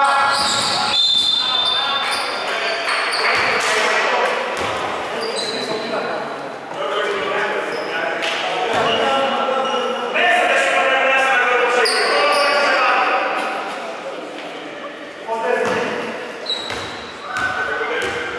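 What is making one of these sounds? A crowd of spectators cheers and shouts loudly in a large echoing hall.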